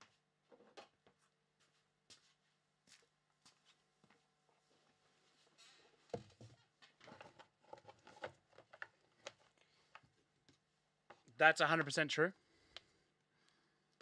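Plastic wrapping rustles and cards tap as they are handled.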